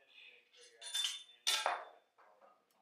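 Weight plates clank on a barbell.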